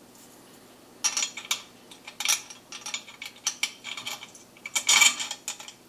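Small metal parts click and tap together.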